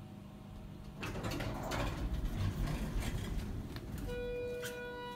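An elevator door slides open.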